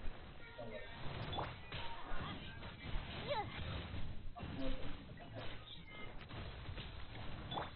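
Fiery blasts whoosh and crackle in rapid bursts.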